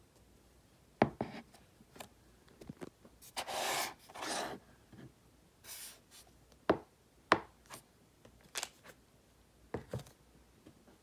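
Plastic containers knock and tap on a hard surface.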